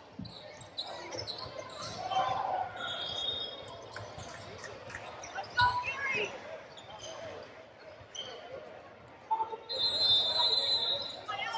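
Young players and spectators chatter and call out in a large echoing hall.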